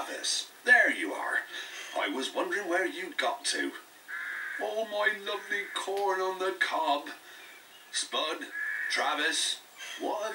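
A man speaks with animation through a small loudspeaker.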